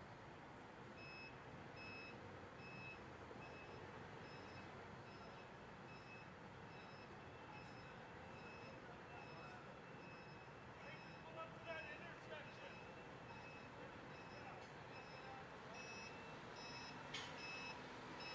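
A truck's reversing alarm beeps steadily.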